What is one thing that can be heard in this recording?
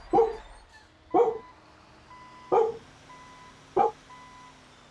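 A man calls out in short, loud bursts close to a microphone.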